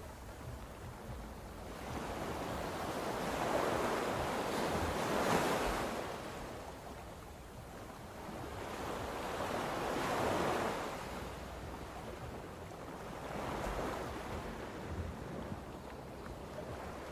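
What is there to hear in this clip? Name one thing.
Gusty wind roars outside the car, rising and falling in surges.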